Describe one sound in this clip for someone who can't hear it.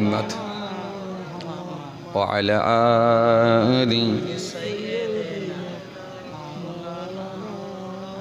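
A young man preaches into a microphone in a melodic, chanting voice, heard through loudspeakers.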